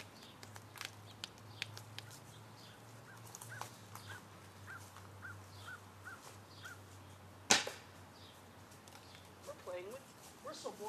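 Footsteps swish through grass nearby.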